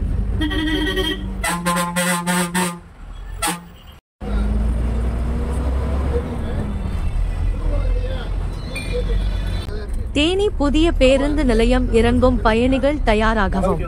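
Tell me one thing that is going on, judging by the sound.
A bus engine rumbles while driving.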